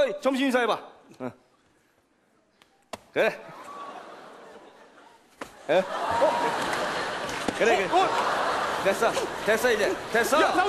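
Young men speak loudly and with animation on a stage.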